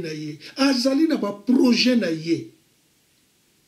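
An elderly man speaks with animation close to a microphone.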